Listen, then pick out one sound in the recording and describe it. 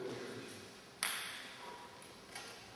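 A table tennis ball clicks off a paddle in a large echoing hall.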